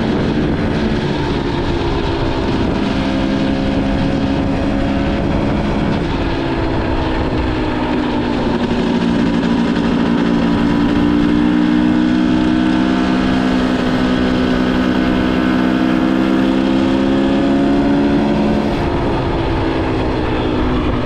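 Wind rushes loudly past a moving rider outdoors.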